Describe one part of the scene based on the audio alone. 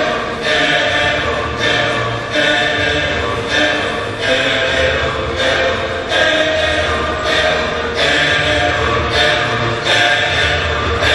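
Music plays loudly with a steady beat in a large echoing hall.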